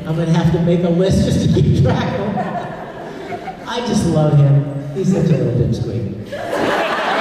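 A young man talks and laughs into a microphone in a large room.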